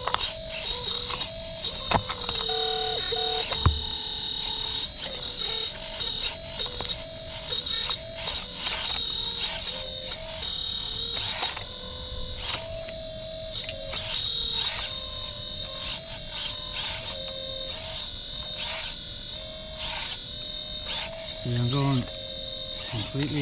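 A toy excavator's bucket scrapes and clicks against the soil.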